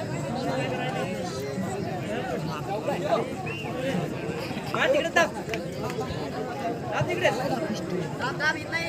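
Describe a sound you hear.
A crowd of young men shouts and cheers loudly outdoors.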